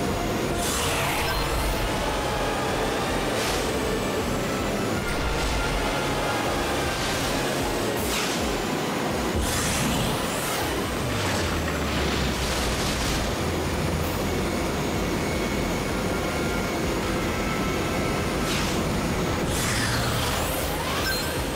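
A hover racer's engine hums steadily as it speeds along.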